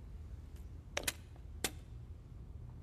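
Snooker balls click against each other.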